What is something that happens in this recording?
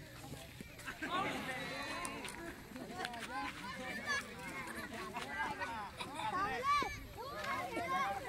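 Boys shout and call out to each other outdoors.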